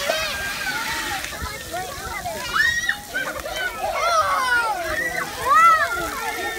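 Children shout and squeal excitedly nearby, outdoors.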